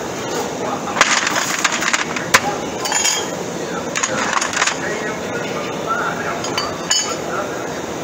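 Metal tubes clink and clatter as they are handled.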